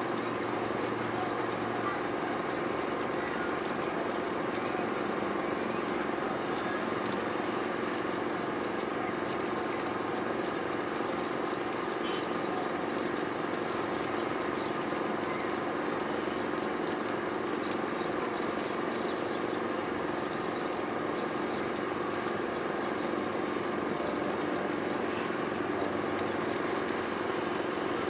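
The distant city hums with a steady, low drone of traffic.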